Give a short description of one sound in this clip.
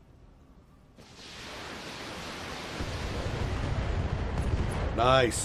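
A heavy weapon fires with a loud, roaring blast.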